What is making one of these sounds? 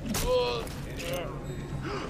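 Water splashes underfoot.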